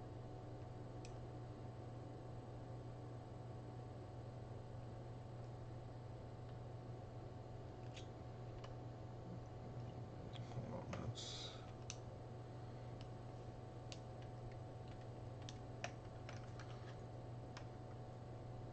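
Small metal parts click and rattle softly.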